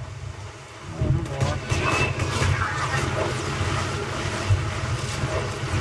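Gunfire from a video game rattles in rapid bursts through a television speaker.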